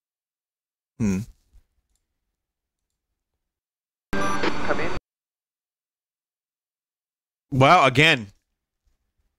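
Electronic game sound effects blare in short, separate bursts.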